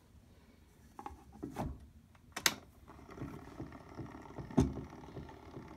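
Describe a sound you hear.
A record knocks and rattles as a hand sets it on a gramophone.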